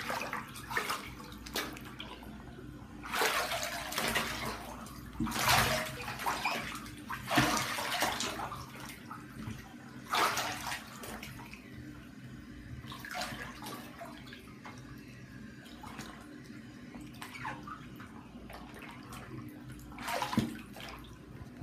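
Water splashes and sloshes as feet kick in a bathtub.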